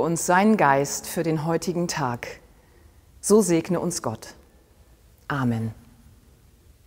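A middle-aged woman speaks warmly and clearly, close by, in a large echoing hall.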